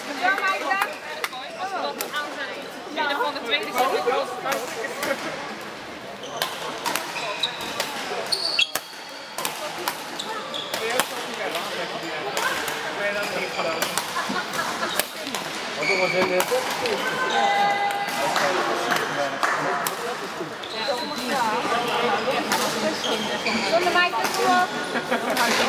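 Rackets smack shuttlecocks in sharp pops across a large echoing hall.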